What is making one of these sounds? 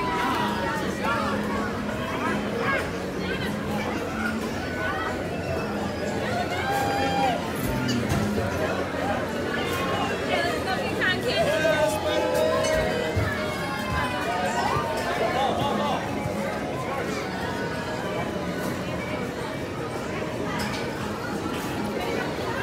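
A crowd chatters outdoors in a steady murmur.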